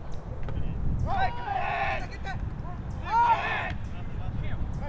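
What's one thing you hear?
Spectators nearby call out and cheer.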